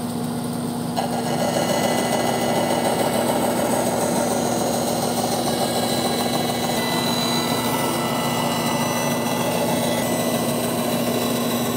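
A band saw blade cuts through wood with a rough whirr.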